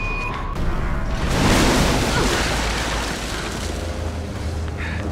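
A loud burst of rushing noise blasts and slowly dies away.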